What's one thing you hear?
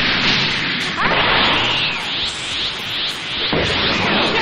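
An energy aura roars and crackles as a fighter powers up.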